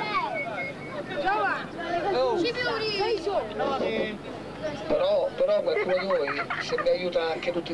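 Young women chat and laugh nearby.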